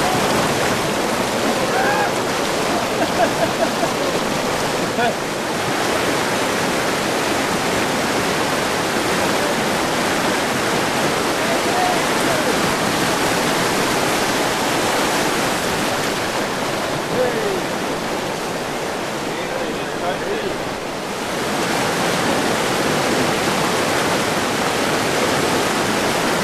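Whitewater rapids rush and roar loudly.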